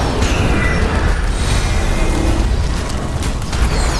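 Energy beams zap and whoosh.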